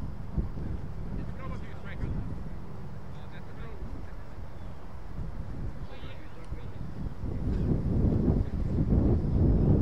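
Wind blows across the microphone outdoors, growing stronger.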